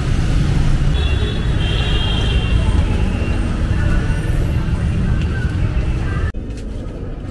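A crowd murmurs and chatters in a busy market.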